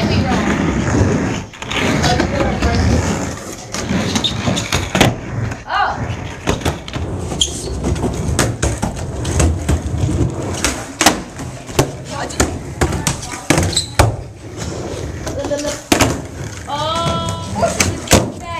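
Skateboard wheels roll and rumble on a hard floor.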